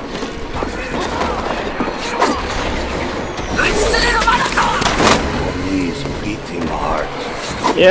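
Magic blasts whoosh and crackle.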